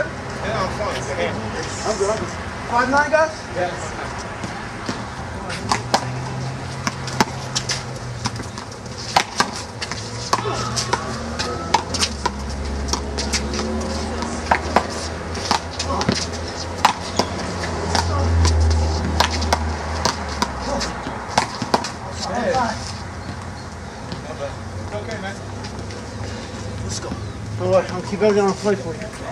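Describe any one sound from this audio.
A ball smacks sharply against a wall, over and over.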